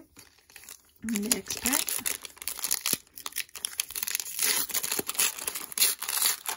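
Foil wrapping crinkles and tears as hands pull a pack open.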